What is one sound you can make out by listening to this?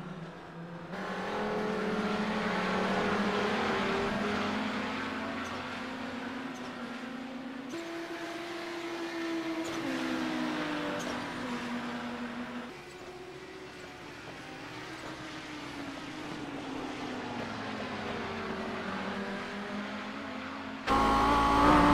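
Racing car engines roar and whine past at high speed.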